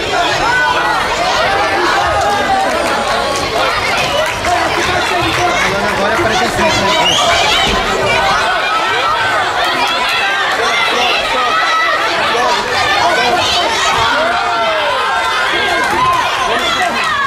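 A crowd of spectators talks and shouts throughout a large echoing hall.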